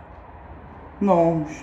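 A young woman speaks briefly and close by.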